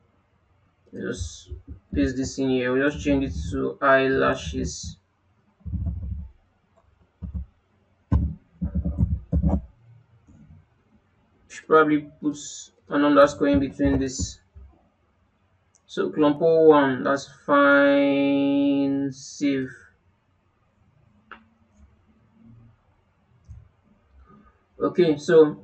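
A young man talks calmly and clearly into a close microphone.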